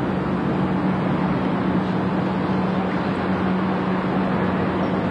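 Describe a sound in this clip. A bus engine idles and rumbles steadily as the bus pulls up close by.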